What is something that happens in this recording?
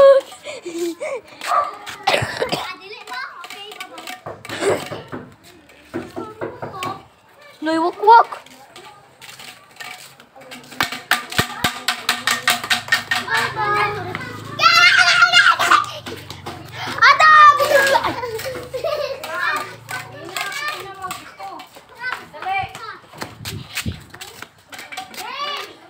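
Young children shout and squeal excitedly nearby, outdoors.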